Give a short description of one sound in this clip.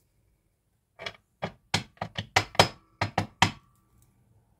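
Cards tap and shuffle on a table.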